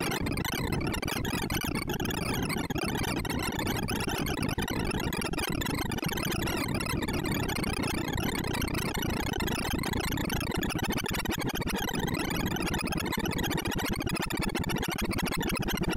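Rapid electronic beeps chatter in a dense, continuous stream.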